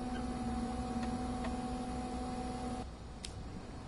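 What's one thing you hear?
A bus engine hums steadily, then cuts off.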